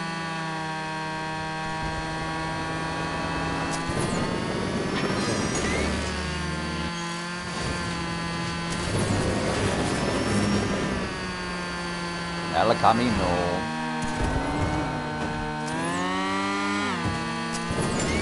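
A racing car engine whines steadily, its pitch rising and falling.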